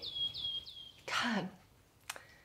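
A woman speaks softly close by.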